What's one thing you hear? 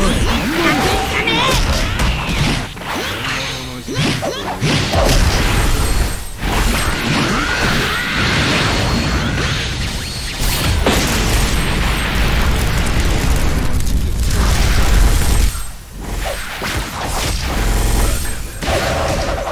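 Punches, blasts and energy attacks boom and crackle rapidly.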